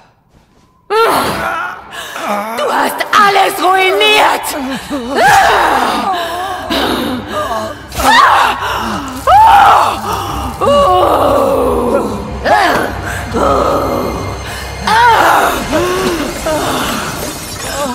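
A woman speaks menacingly and shouts with rage.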